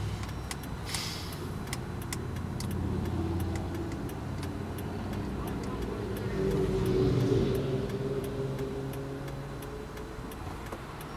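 A car engine idles with a low, steady hum.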